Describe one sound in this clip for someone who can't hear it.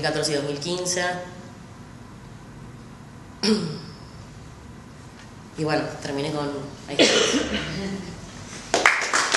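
A young woman speaks with animation in a room.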